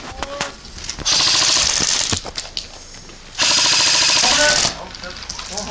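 An airsoft rifle fires rapid bursts close by.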